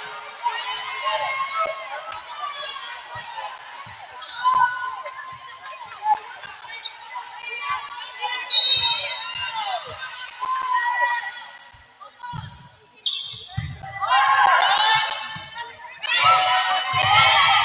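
Young women players shout and call out across an echoing gym.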